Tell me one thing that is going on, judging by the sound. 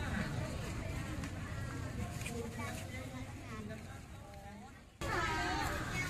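Men and women chatter in a busy outdoor crowd.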